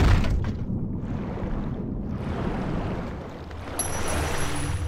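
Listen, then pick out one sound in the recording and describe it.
Water swirls and bubbles underwater.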